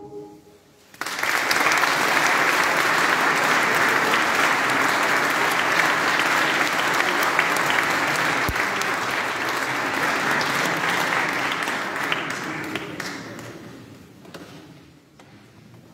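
An audience applauds loudly and then the applause fades away.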